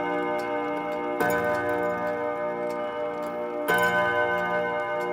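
A music box plays a tinkling, ringing melody up close.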